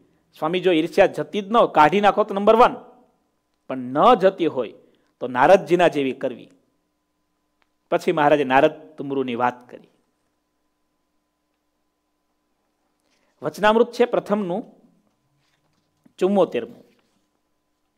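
A man speaks calmly and expressively into a close microphone.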